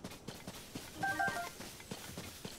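A short bright chime rings as an item is picked up.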